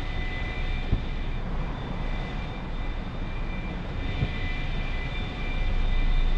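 A jet engine roars steadily, growing louder near the end.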